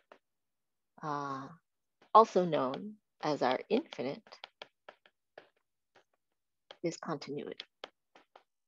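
A woman speaks calmly and explains, close to a microphone as if in an online call.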